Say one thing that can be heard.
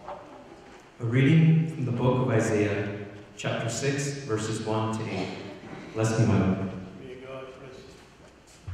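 A young man speaks into a microphone, heard through loudspeakers in a large echoing hall.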